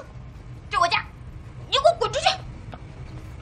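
A young woman speaks in a tearful, shaky voice.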